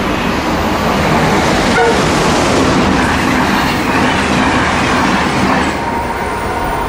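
A passing train rushes and rattles loudly along the track close by, then fades.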